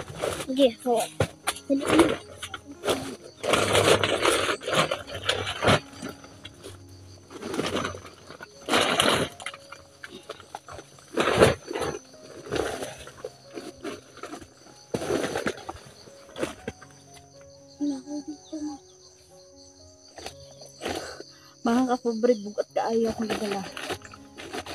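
Plastic sacks rustle and crinkle as they are handled.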